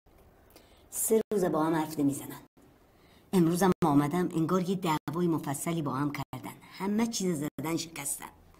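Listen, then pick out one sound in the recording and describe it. An elderly woman speaks with feeling, close by.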